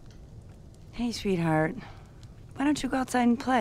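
A woman speaks gently and close by.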